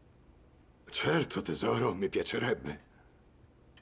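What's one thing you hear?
A man speaks calmly on the phone.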